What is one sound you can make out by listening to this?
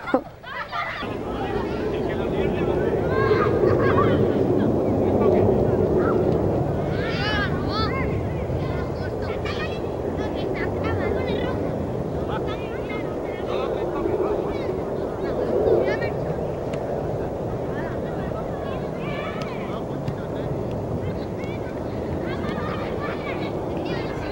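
Children call out across an open field outdoors.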